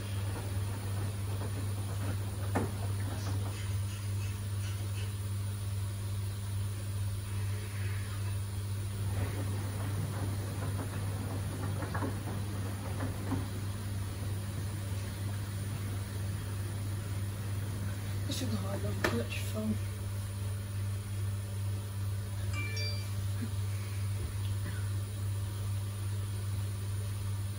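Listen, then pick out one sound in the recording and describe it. A washing machine drum turns with a steady low hum.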